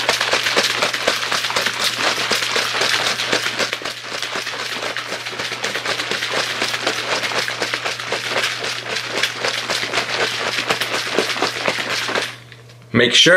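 A shaker bottle rattles rapidly as it is shaken hard.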